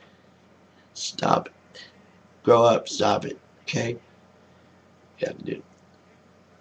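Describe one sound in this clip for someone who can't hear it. A middle-aged man speaks calmly and close to a microphone.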